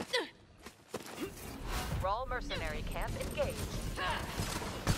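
Crystal shards shatter and crash loudly.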